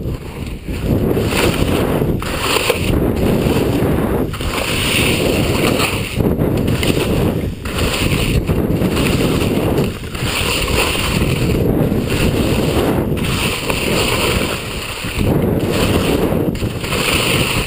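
Skis scrape and hiss over hard snow in rhythmic turns.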